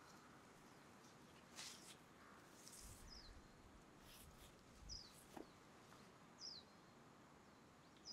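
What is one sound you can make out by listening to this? Leaves rustle softly as a plant is handled.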